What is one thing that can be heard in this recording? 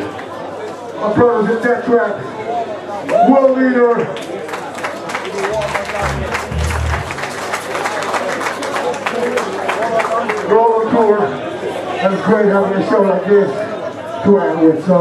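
A man shouts into a microphone over loudspeakers.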